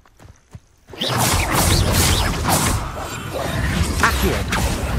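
Spells crackle and blast loudly in a fight.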